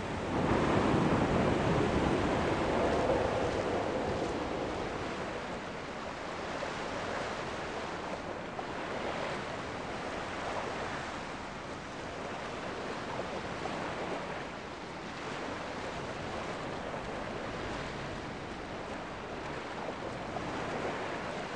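Waves break and wash steadily onto a shore.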